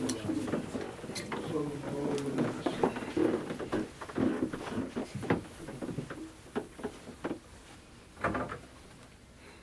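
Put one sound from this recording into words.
Several men murmur and talk quietly close by.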